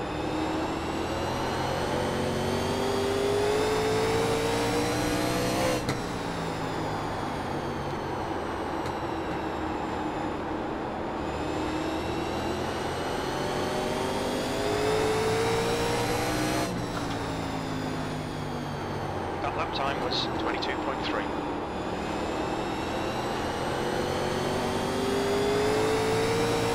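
A race car engine roars, rising in pitch as it speeds up and dropping as it slows for the turns.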